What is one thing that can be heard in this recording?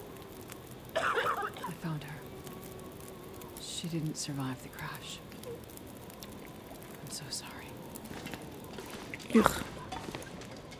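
A young woman speaks quietly close to a microphone.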